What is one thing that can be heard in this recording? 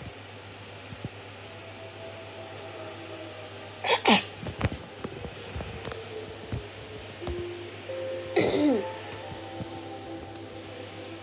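Soft music plays from a television's speakers.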